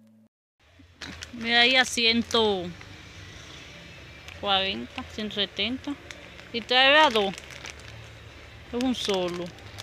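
Plastic packaging crinkles and rustles in a hand.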